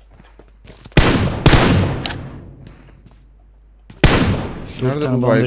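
Rifle shots crack loudly with a ringing tail.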